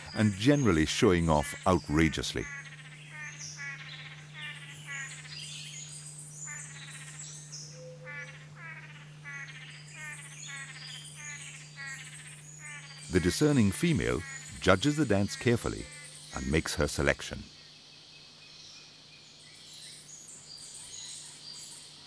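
Small birds chirp and trill rapidly nearby.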